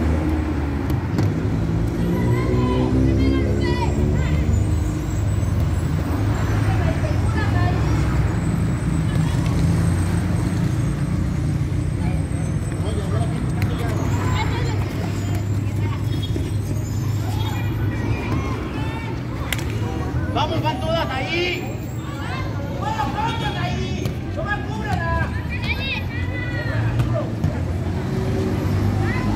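Young girls shout and call out to each other across an outdoor pitch.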